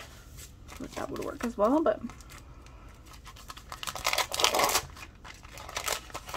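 Plastic packaging crinkles and rustles in someone's hands.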